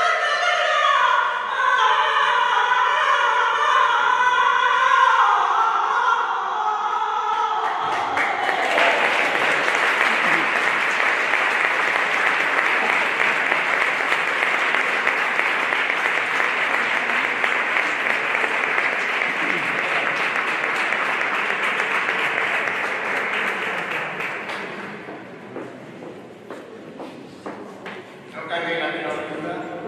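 A group of musicians plays a slow piece in a large echoing hall.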